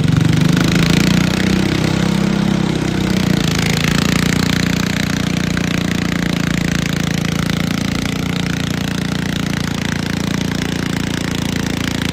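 A small tractor engine idles with a steady, throbbing rumble close by.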